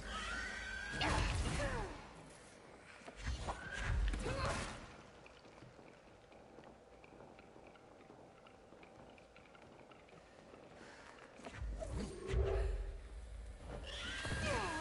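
Heavy objects crash and smash with deep booming impacts.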